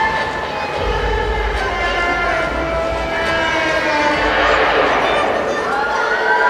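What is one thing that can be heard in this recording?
Music plays over loudspeakers in a large echoing hall.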